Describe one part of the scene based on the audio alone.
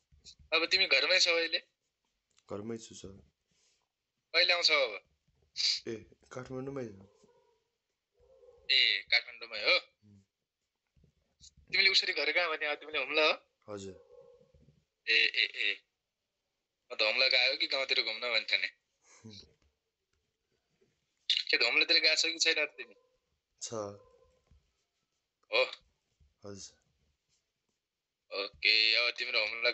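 A man speaks calmly and explains at a steady pace, close to a microphone.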